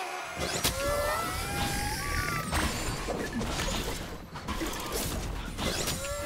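Game spells and attacks crackle and whoosh in quick bursts.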